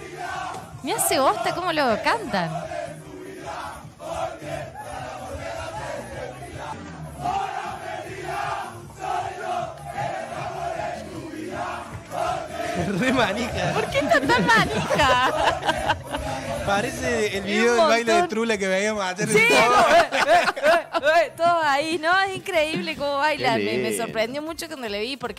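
A crowd of young men chants and sings loudly in an echoing room.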